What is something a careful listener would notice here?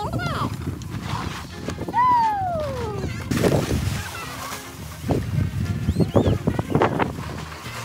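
Children squeal and shout excitedly nearby outdoors.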